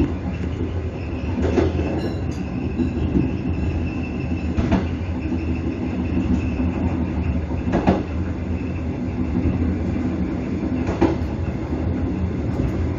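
Train wheels rumble along the rails.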